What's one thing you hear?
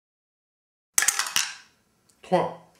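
A plastic die clatters as it rolls across a wooden tray.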